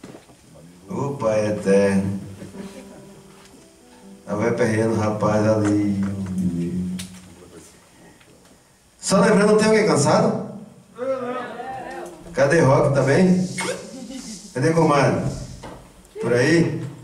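A man speaks through a microphone and loudspeakers in a large hall, in short bursts with pauses.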